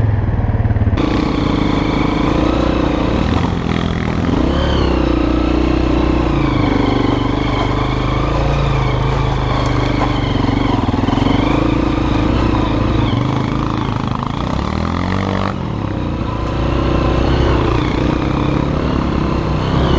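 A dirt bike engine revs and hums steadily up close, rising and falling in pitch.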